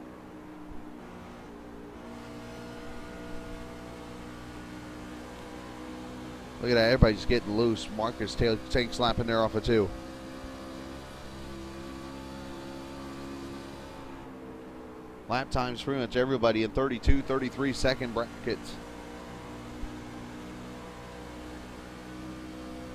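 A race car engine drones steadily at high speed.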